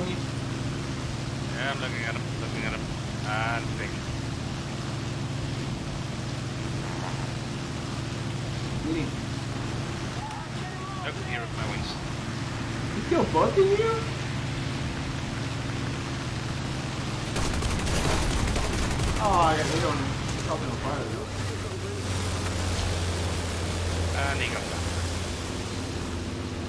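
A propeller plane's engine drones steadily.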